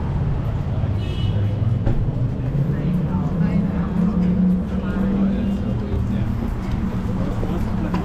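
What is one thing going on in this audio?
A vehicle engine drones past, rising in pitch and then fading.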